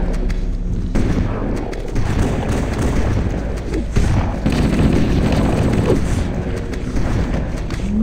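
A shotgun fires loud booming blasts.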